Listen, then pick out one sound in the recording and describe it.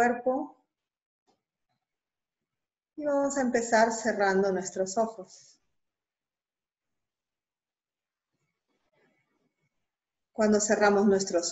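A woman speaks calmly and slowly into a close microphone, with long pauses.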